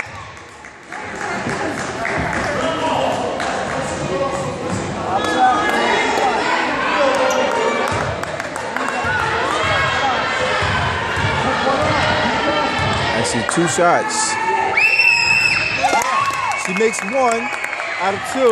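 A crowd of spectators chatters and cheers loudly.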